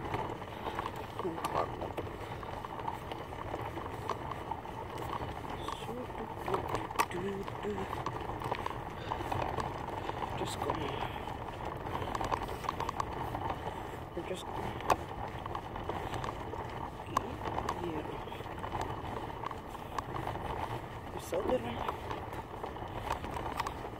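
Small plastic wheels rattle and rumble steadily over rough pavement outdoors.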